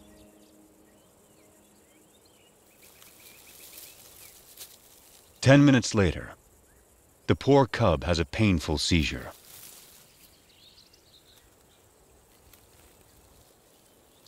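A large cat rolls and rustles in dry grass.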